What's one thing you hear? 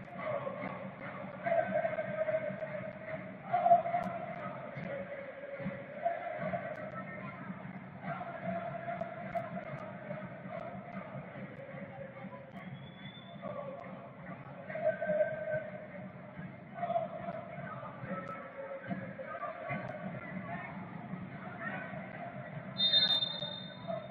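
A large stadium crowd chants and sings steadily in the open air.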